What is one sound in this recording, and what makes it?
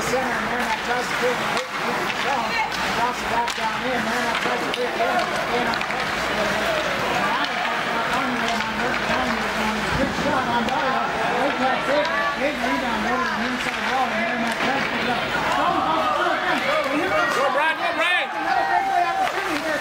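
Sticks clack against a puck.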